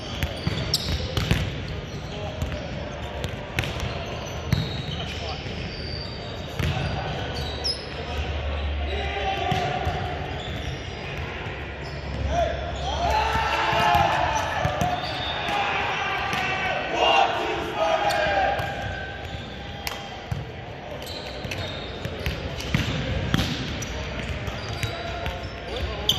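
A volleyball thuds off hands again and again in a large echoing hall.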